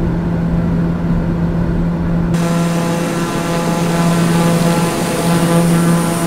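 A propeller plane's engine drones steadily, muffled at first and then louder and hissier.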